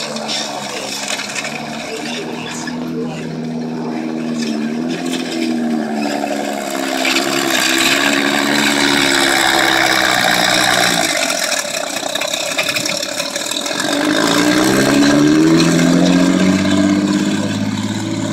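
A tracked armoured vehicle's engine roars as it drives past, with its engine note rising and falling.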